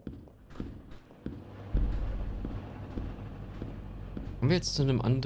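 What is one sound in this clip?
Footsteps thud slowly and evenly on a hard floor.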